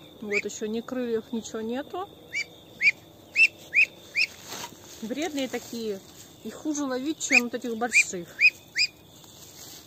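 A Muscovy duckling peeps.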